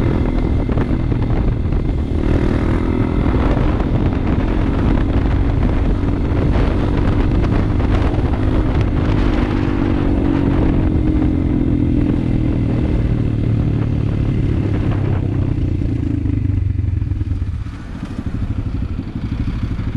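A motorbike engine drones loudly up close as the bike rides along.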